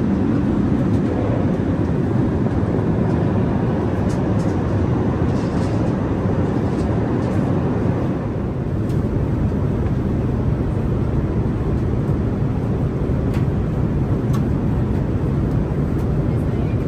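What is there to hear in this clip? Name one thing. A steady low roar of jet engines fills the cabin of an airliner in flight.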